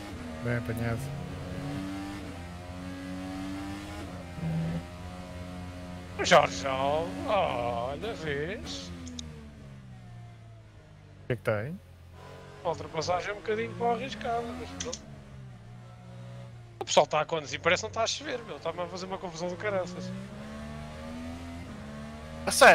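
An open-wheel race car engine drones at speed.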